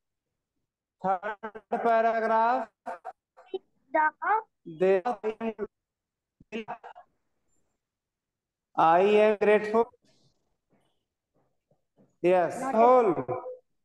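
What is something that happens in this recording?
A man speaks with animation over an online call, in short bursts with pauses.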